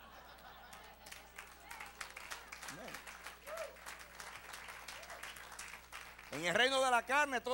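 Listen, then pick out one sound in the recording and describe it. An audience claps.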